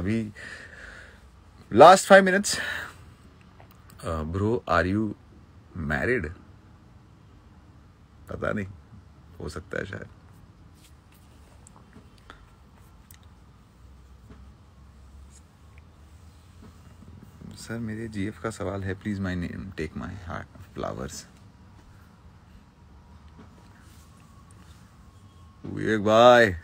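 A young man speaks calmly and close by, in short bursts with pauses.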